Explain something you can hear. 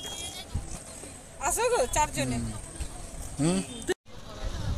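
A woman talks close by, outdoors.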